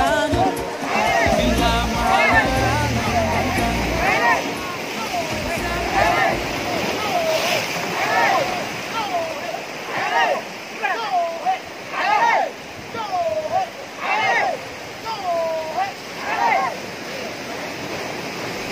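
A crowd of men chants loudly in rhythm outdoors.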